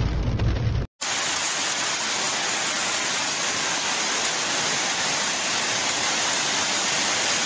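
Heavy rain pours down and splashes onto water.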